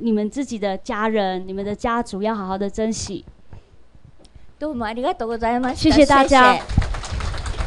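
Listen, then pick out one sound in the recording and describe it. Two women sing into microphones over loudspeakers.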